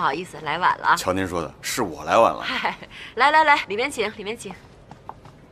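A woman speaks warmly, inviting someone in.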